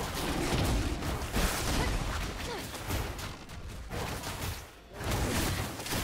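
Game sound effects of spells and blows crackle and thud.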